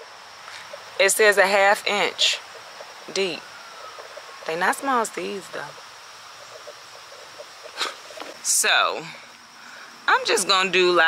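A woman speaks close up with feeling, in short bursts.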